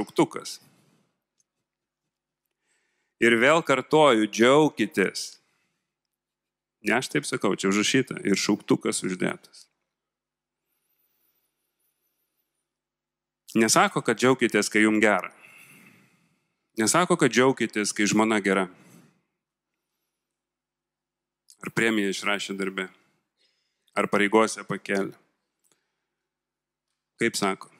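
A man speaks calmly into a microphone, with pauses, heard through loudspeakers.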